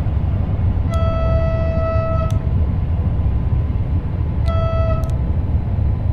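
A train horn sounds twice.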